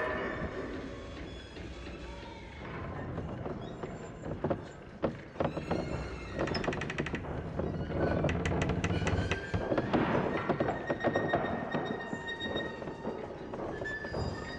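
A roller coaster car rattles and clacks along its track.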